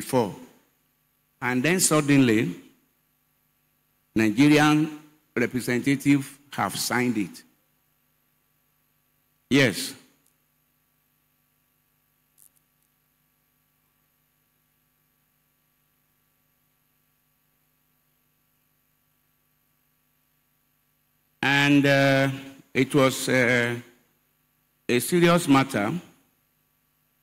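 A man preaches into a microphone with energy, in bursts with long pauses, heard through a loudspeaker.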